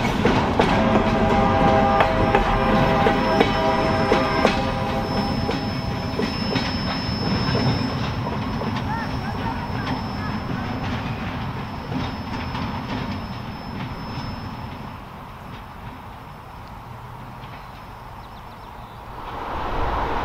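A freight train rolls past close by, its wheels clattering and rumbling on the rails.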